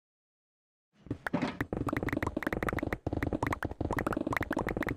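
Stone blocks crack rapidly under a pickaxe.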